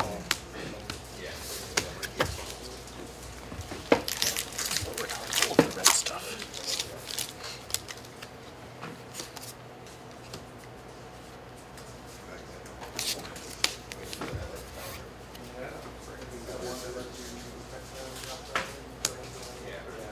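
Playing cards slide and tap on a table.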